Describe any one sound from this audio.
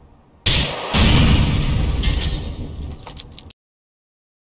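An explosion rumbles and echoes.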